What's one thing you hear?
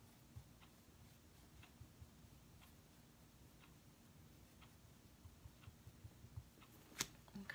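A paintbrush dabs and taps softly on a board.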